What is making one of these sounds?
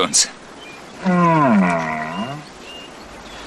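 A bear gives a long, low groan that rises and falls.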